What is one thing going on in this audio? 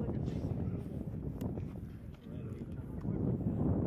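Footsteps shuffle on grass outdoors.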